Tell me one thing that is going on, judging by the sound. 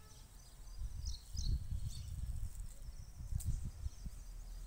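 Hands scrape and scoop loose soil.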